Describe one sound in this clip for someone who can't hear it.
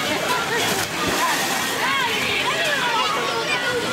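Water splashes loudly as a rider lands in a pool.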